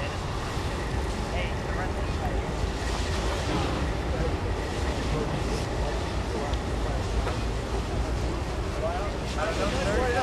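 Water sprays from a fire hose onto a burning wreck with a steady hiss.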